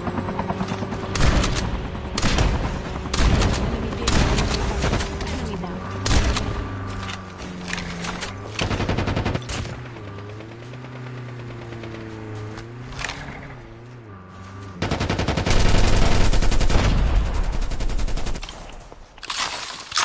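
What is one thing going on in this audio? A vehicle engine rumbles and roars.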